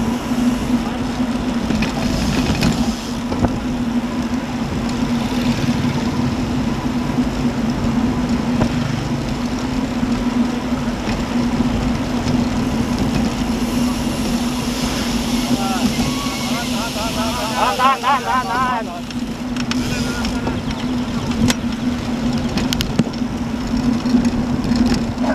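Bicycle tyres hum steadily on a paved road.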